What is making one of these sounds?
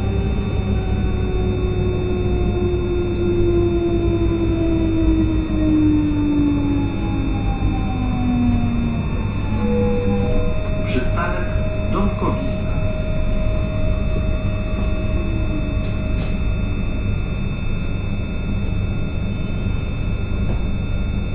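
A train rumbles steadily as it rolls along the track.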